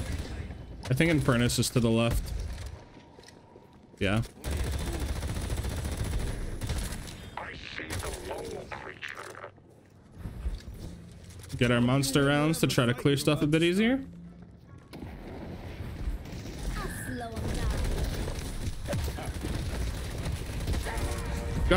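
A crossbow fires bolts in quick bursts.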